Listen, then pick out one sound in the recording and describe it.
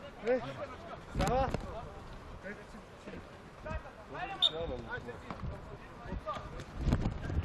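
Men shout to each other outdoors across an open field.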